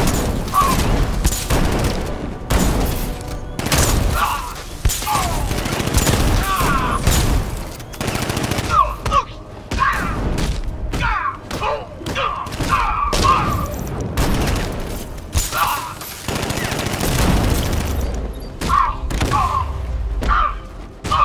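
Heavy punches and kicks thud in quick succession.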